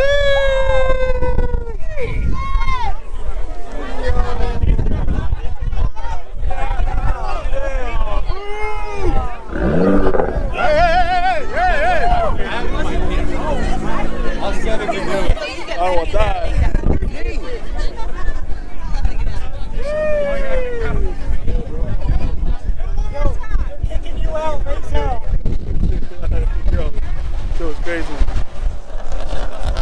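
A crowd chatters and shouts outdoors.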